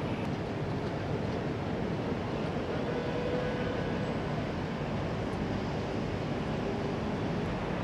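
Water jets hiss and splash from a fireboat onto the water.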